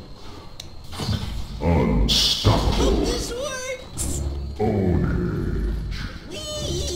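Game combat effects clash, crackle and whoosh.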